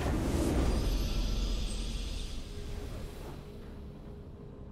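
A triumphant fanfare plays as a game match ends.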